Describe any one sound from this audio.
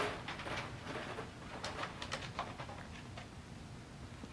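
A man speaks calmly into a microphone in a hall with an echo.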